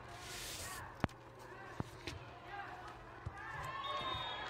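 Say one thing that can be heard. A volleyball is struck with a hand with a dull smack.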